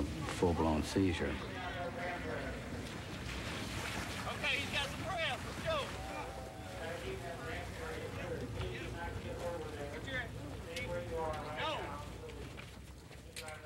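Several men shout to each other outdoors.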